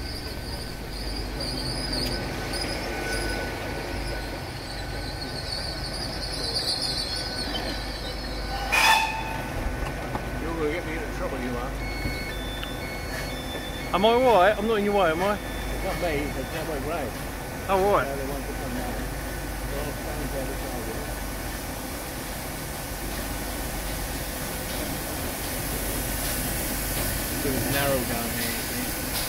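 A steam locomotive chuffs steadily as it approaches.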